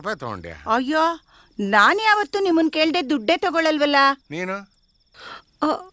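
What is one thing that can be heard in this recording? A woman speaks in reply.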